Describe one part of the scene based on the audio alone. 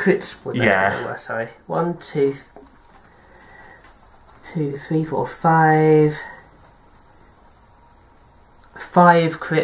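Playing cards rustle and slap as a deck is shuffled.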